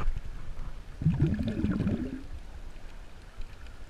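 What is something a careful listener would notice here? Air bubbles burble underwater.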